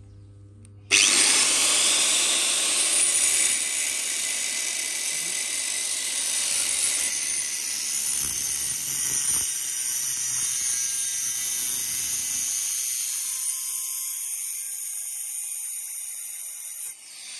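An angle grinder whines loudly as it cuts through a metal tube.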